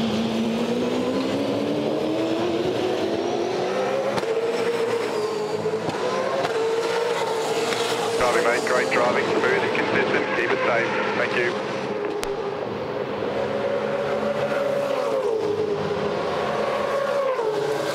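Racing car engines roar at high revs, rising and falling in pitch.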